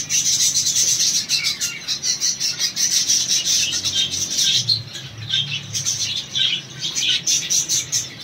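Many small finches chirp and twitter in chorus.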